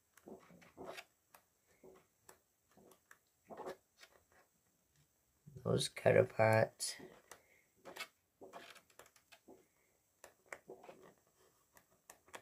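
Stiff pages of a book turn and flap close by.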